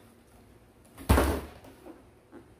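A plastic appliance is set down with a dull thump.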